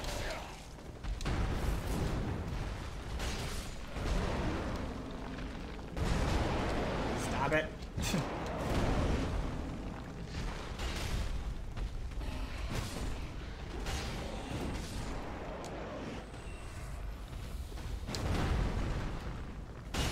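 A huge monster's limbs crash heavily onto stone.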